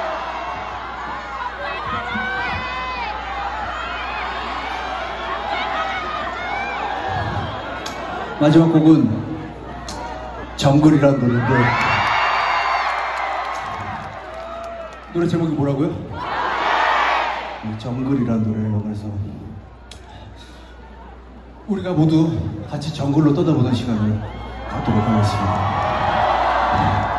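An audience cheers and screams in bursts.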